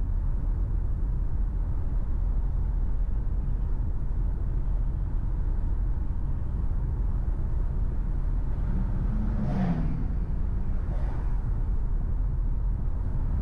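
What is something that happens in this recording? A car engine hums steadily while driving along a road.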